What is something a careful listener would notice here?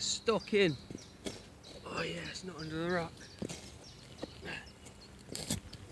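A spade digs into the ground.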